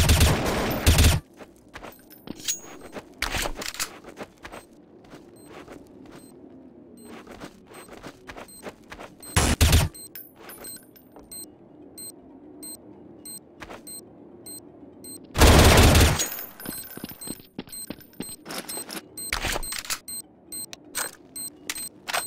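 Footsteps thud on hard ground.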